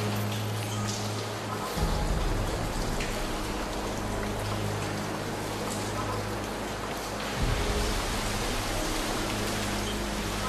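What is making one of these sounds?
Wind rustles through dense leaves outdoors.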